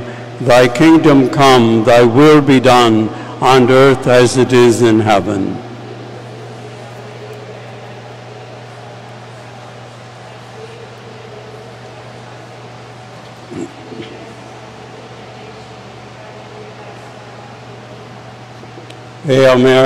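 An adult man chants into a microphone in a large echoing hall.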